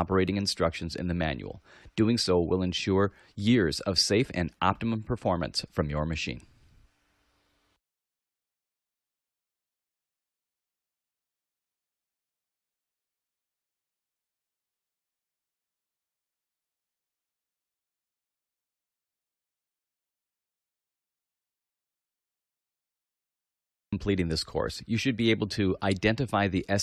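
A man speaks calmly through a microphone, as if presenting.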